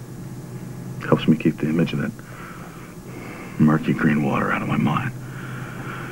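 A man speaks quietly and tensely, close by.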